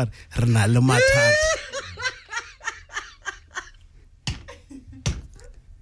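An older man laughs heartily close to a microphone.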